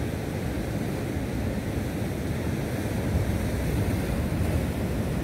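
Waves crash and churn steadily against rocks.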